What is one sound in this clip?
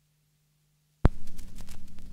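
A stylus drops onto a spinning vinyl record with a loud thump.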